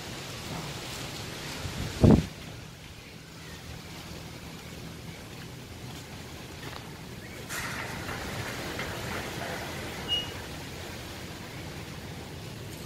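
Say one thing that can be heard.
Strong wind gusts rustle through tree leaves outdoors.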